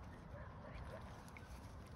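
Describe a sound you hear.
A young swan splashes the water with its wings.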